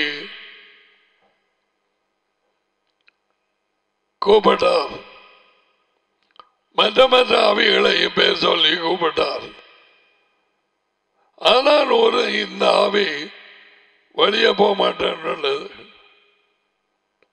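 An elderly man speaks calmly into a close headset microphone, in short phrases with pauses.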